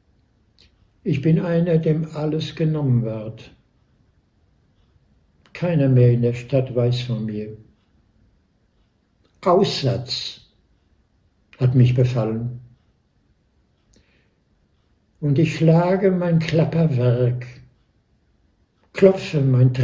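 An elderly man speaks calmly and close to a microphone, in short phrases with pauses.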